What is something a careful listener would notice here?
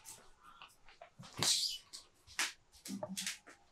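Footsteps pass close by.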